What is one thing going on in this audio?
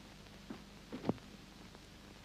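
A door shuts.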